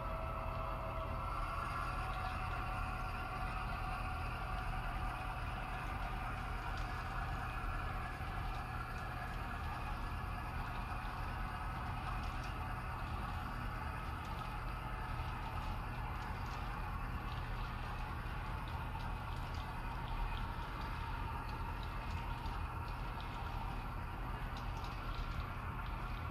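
A model train's wheels rumble and click steadily along the track.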